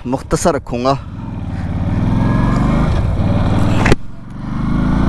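A motorcycle engine rumbles and revs up as the motorcycle speeds up.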